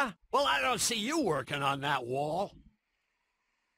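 An older man speaks gruffly and close.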